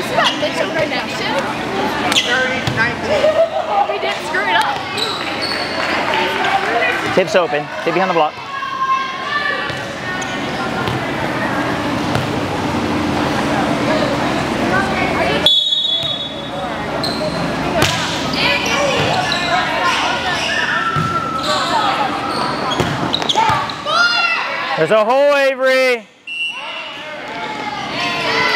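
Young women chatter and call out across a large echoing gym.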